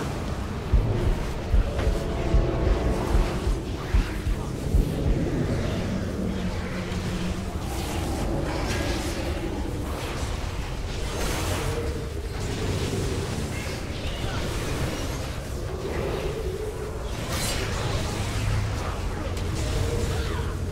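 Magic spells crackle and boom in a fight.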